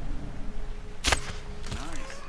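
A bow string twangs as an arrow is loosed.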